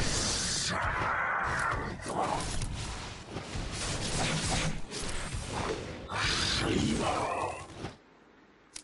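Magic spells whoosh and crackle in loud bursts.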